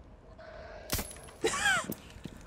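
A pistol fires a sharp shot.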